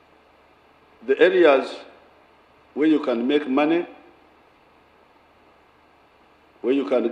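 An elderly man speaks slowly and deliberately into a microphone, with long pauses between phrases.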